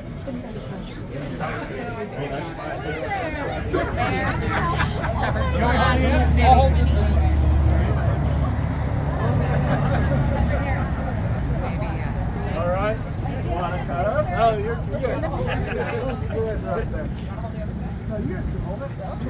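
A group of people chatter and talk at once.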